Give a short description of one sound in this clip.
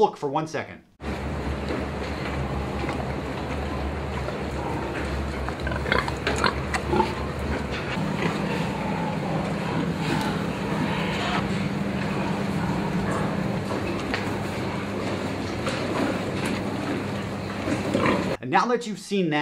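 Pigs grunt and squeal.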